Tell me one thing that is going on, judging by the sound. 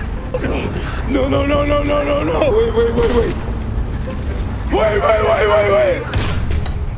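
A man cries out in distress, close to a microphone.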